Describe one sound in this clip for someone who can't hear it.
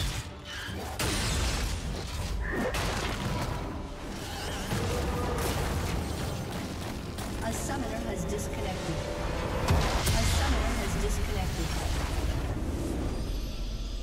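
Fighting effects clash, zap and crackle rapidly.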